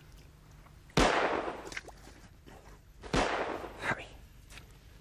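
Boots crunch on snow.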